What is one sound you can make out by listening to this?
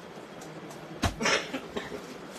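A plastic-wrapped package drops onto a hard floor with a thud and a rustle.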